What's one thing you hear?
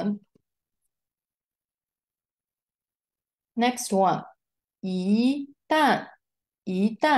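A woman speaks calmly through a microphone, pausing between phrases.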